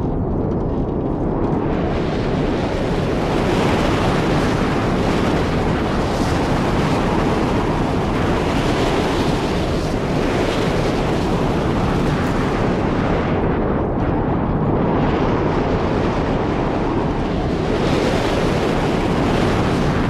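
A strong wind roars and howls steadily outdoors.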